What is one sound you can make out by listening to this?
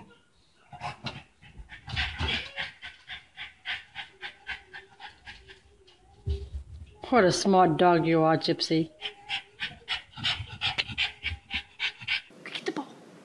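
A dog's paws patter and tap on carpeted stairs.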